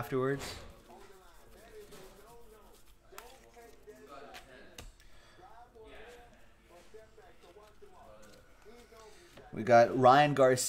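Plastic card cases click and rustle in hands.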